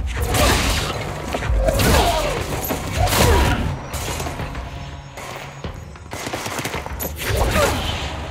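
Debris clatters and scatters across the floor.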